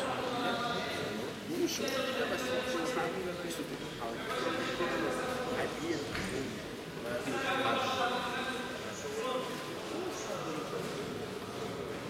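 A crowd of men murmurs and talks in a large echoing hall.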